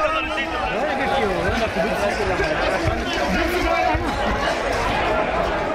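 Several men talk loudly and excitedly close by.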